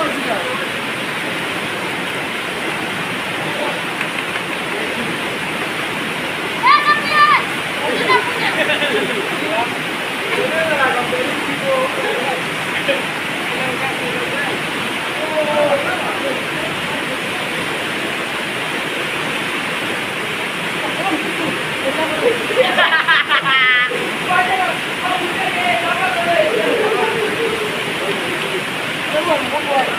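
A river rushes steadily nearby.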